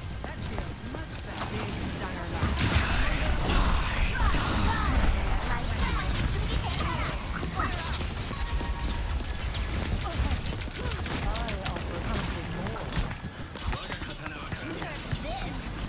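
Gunfire and energy blasts crackle rapidly in a video game.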